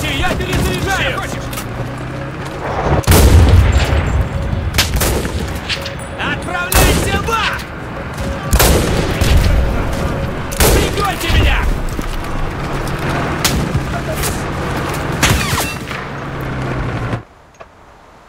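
Distant gunfire and explosions rumble in battle.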